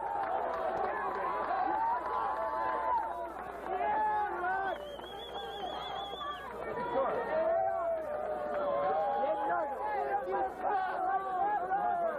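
A large crowd of young men and women chatters and calls out outdoors.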